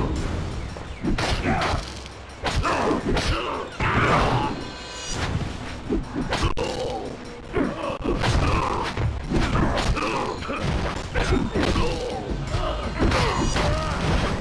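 Swords swish and clash in a fast fight.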